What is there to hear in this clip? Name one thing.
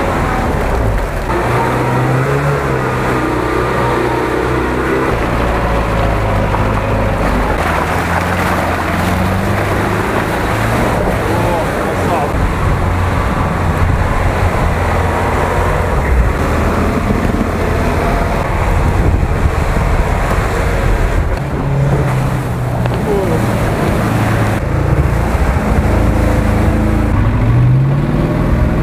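Heavy truck engines roar and rev.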